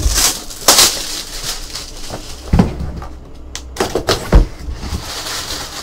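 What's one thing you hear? A cardboard box knocks and scrapes as it is handled.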